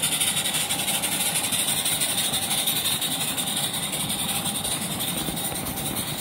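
Model train wheels clatter softly on the tracks.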